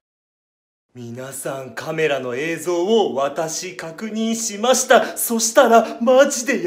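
A young man speaks close up with exaggerated animation.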